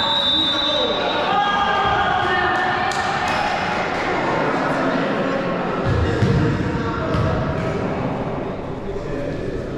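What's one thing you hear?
Sneakers squeak on a wooden court floor.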